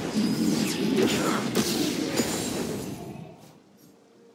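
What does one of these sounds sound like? Game combat effects clash and crackle loudly, then fade away.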